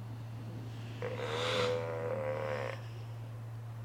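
A sea lion gives a long, loud bellowing call close by.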